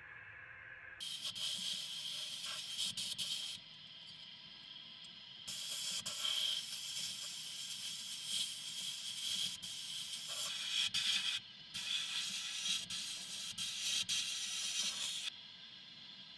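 Compressed air hisses loudly from a nozzle in long bursts.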